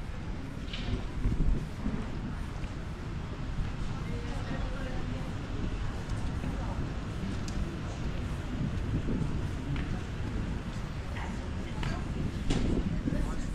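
Footsteps tread on wet paving outdoors.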